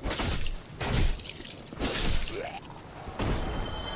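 A sword slashes and strikes a body.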